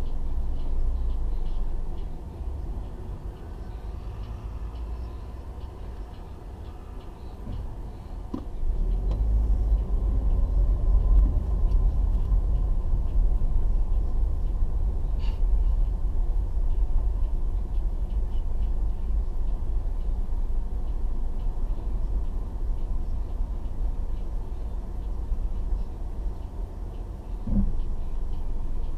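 A car engine rumbles low from inside the vehicle.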